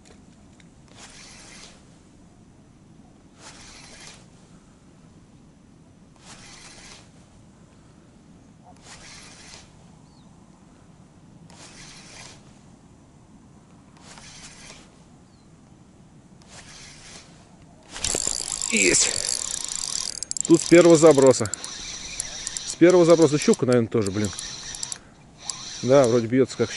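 A fishing reel clicks as line is wound in, in short regular bursts.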